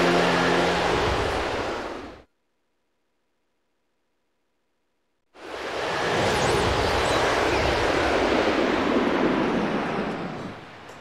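A whirlwind roars and gusts loudly.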